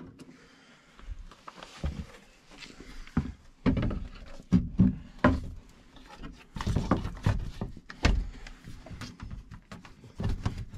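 A metal panel bangs and scrapes as it is fitted into place.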